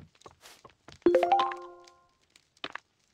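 A bright game chime rings out.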